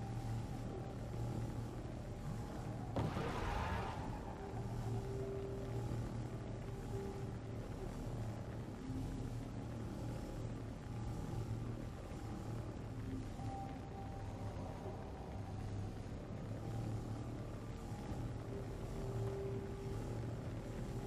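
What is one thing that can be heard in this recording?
A hover bike's engine hums steadily throughout.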